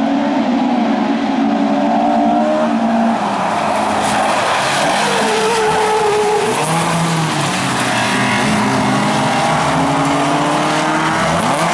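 Several racing car engines roar loudly.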